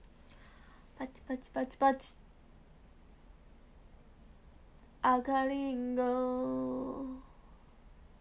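A young woman speaks briefly and close by, in short bursts with long pauses.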